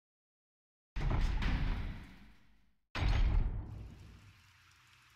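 A heavy metal door grinds open with a deep booming rumble.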